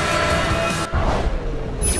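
A sports car engine roars as the car races past.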